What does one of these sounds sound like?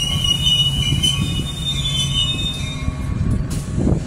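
Train brakes squeal in high tones.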